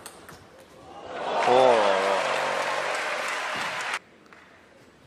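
A crowd cheers and applauds loudly, then stops abruptly.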